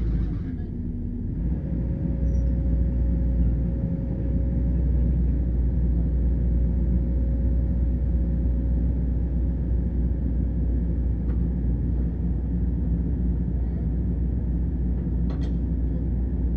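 A digger's engine rumbles steadily nearby.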